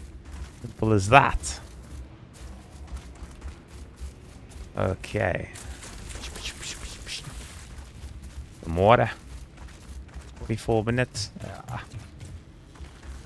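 Footsteps run quickly over grass and stone.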